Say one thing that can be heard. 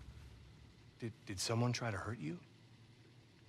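A middle-aged man asks a question in a low, calm voice.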